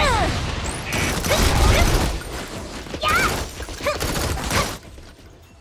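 Energy blasts zap with rising whines.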